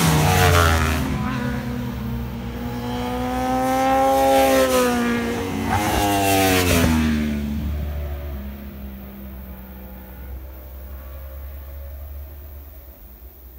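Motorcycle engines whine at high revs and fade away into the distance.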